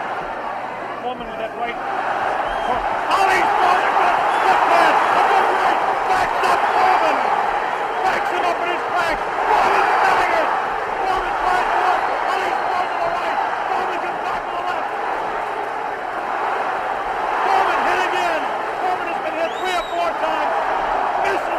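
Punches thud against a boxer's body.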